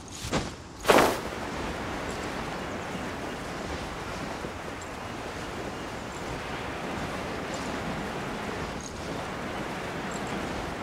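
Wind rushes steadily past during a glide.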